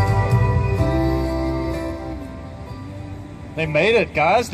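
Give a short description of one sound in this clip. An acoustic guitar plays gently outdoors.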